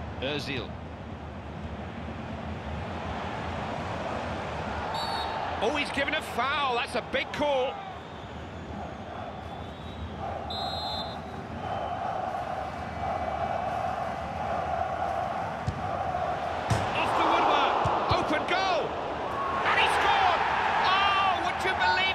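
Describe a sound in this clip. A stadium crowd roars steadily and swells into loud cheering.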